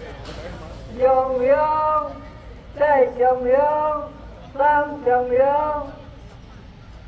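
A group of men and women chant a prayer together in unison.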